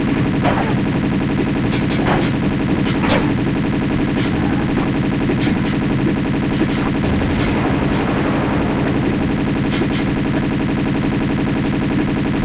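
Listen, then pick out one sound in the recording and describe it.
Pistol shots ring out in short bursts.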